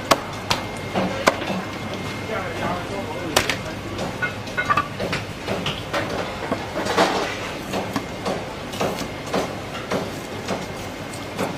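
A cleaver chops through a large fish.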